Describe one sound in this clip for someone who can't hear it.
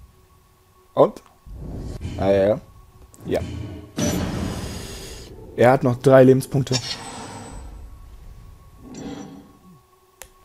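Short magical whooshing and chiming effects sound as cards are played.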